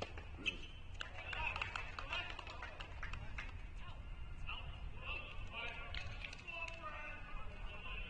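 A group of young people talk and call out in the distance, outdoors.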